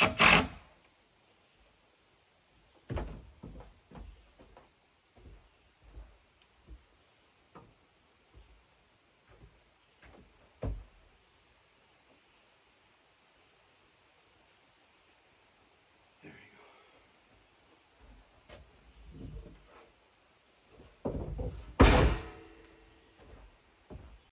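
Footsteps and knocks sound on wooden porch boards.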